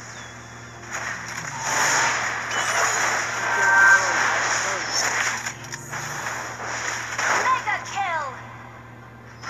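Video game spell effects whoosh and clash during a fight.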